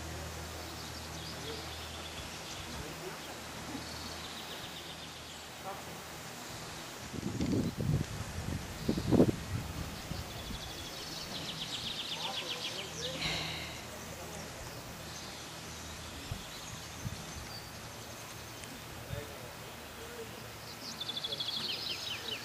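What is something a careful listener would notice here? Birds chirp and trill in the trees outdoors.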